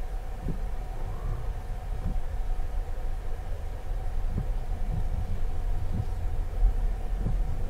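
Windshield wipers thump back and forth at a steady pace.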